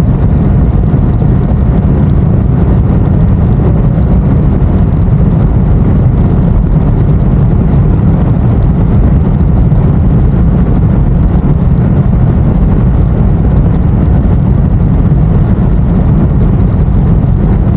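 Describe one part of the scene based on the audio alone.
A motorcycle engine roars steadily at speed.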